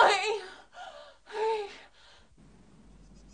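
A young woman cries out desperately, pleading for help close by.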